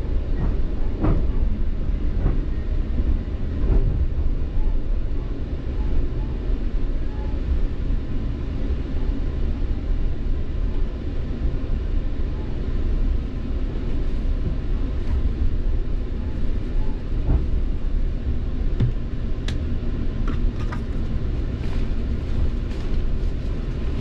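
Train wheels clack and thump over rail joints.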